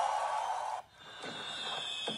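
A bright celebratory jingle plays with popping fireworks.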